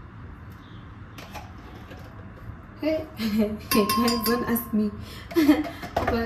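A spoon clinks against a plastic tub.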